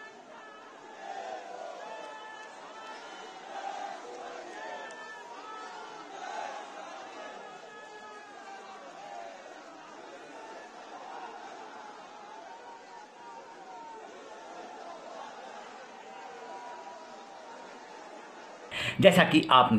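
A large crowd chants and shouts outdoors.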